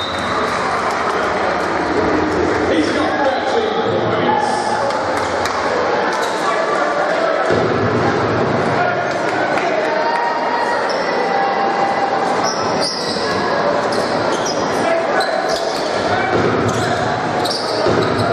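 A large crowd murmurs and cheers in an echoing indoor hall.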